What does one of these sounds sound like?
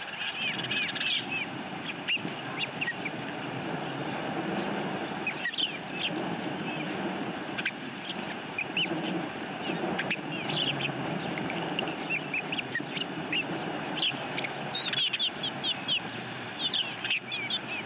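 Osprey chicks chirp and cheep in short high bursts.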